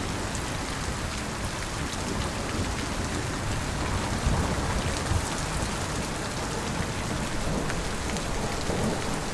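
Raindrops splash on a wet pavement.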